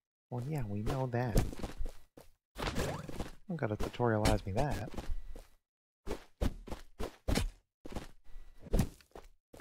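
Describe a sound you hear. Short electronic game sound effects pop and whoosh.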